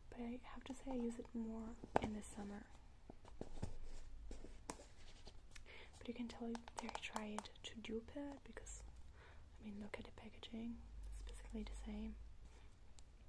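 A young woman speaks softly, very close to a microphone.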